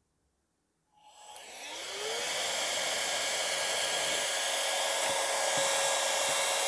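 A handheld motor whirs steadily with a high hum.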